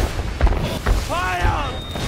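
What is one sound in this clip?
An explosion booms with a roar of flames.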